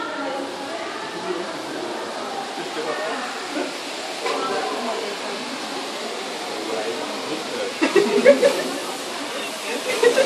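Adult visitors chatter nearby.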